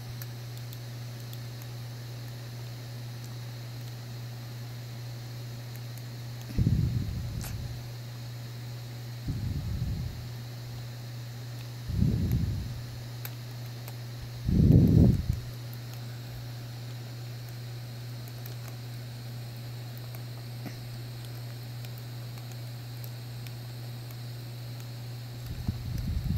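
Buttons click softly under thumbs.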